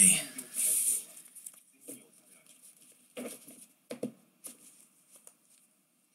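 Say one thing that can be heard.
Trading cards rustle and tap as hands shuffle a stack.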